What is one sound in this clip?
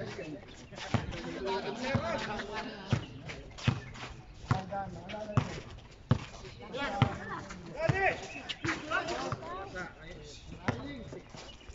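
A basketball bounces repeatedly on an outdoor court.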